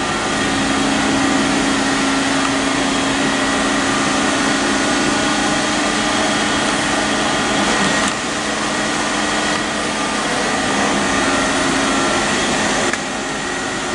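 Machinery hums steadily in a large echoing hall.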